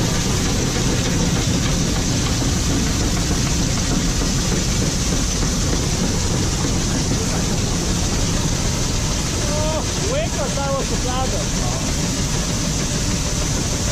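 An electric auger runs, conveying grain.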